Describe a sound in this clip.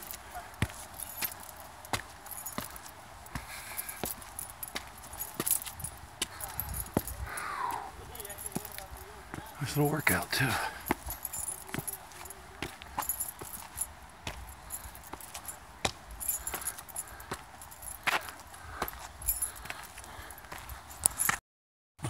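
Footsteps scuff and tap on stone steps.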